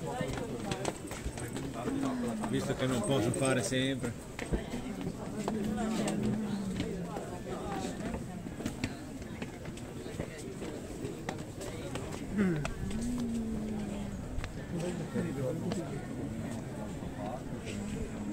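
Several adult men and women chat nearby in a walking crowd outdoors.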